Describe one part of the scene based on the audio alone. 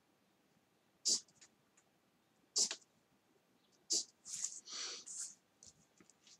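A pen scratches lightly across paper.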